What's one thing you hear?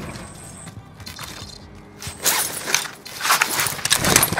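A video game rifle is swapped out with a quick metallic clatter.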